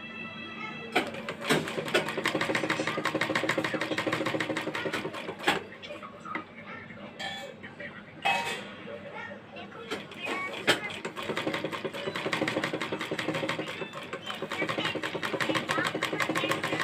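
A sewing machine rattles rapidly as it stitches fabric.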